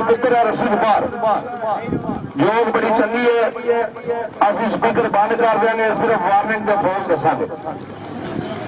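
A man talks loudly and with animation nearby.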